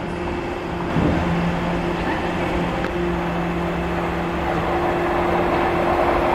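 An electric train rumbles along the track as it draws near.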